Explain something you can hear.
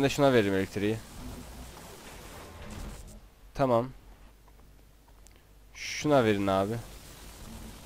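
A young man speaks with animation into a headset microphone, in short bursts.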